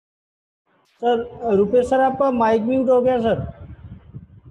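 A man speaks through an online call.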